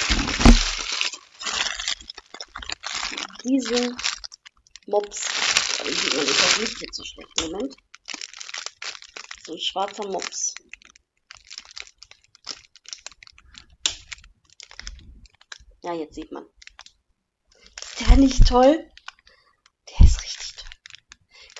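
A plastic bag crinkles and rustles loudly up close.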